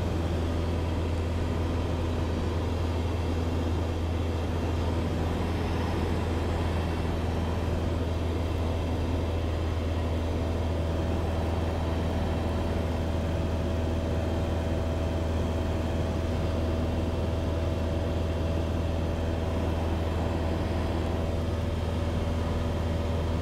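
Wind rushes past the plane's cabin.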